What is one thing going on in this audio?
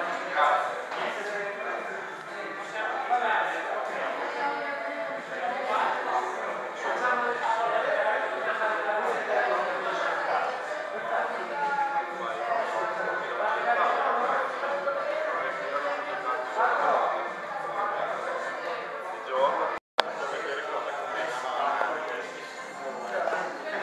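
A crowd of young men and women chatter with many overlapping voices.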